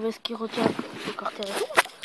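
Fabric rustles as clothing is pushed around by hand.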